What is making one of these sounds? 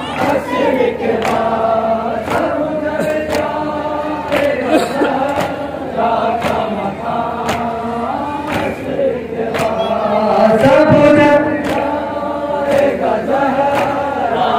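A crowd beats their chests in a slow, steady rhythm.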